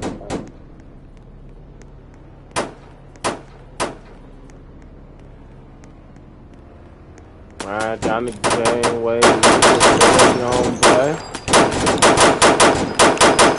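A rifle fires single shots, then rapid bursts.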